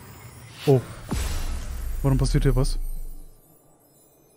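A deep rumbling whoosh swells and fades.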